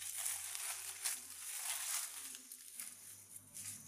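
Footsteps rustle through dry leaves on the ground.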